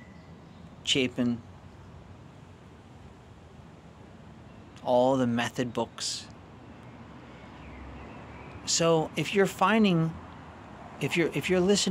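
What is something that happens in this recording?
A man speaks close to the microphone in short, thoughtful bursts with pauses.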